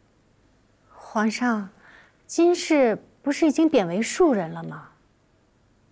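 A woman speaks with a sly, pointed tone, close by.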